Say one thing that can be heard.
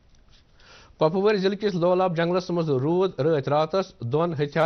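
A man speaks calmly and steadily into a microphone.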